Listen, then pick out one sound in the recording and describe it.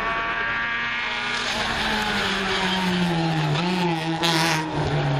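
A rally car engine roars at high revs, its pitch rising and dropping between gear changes.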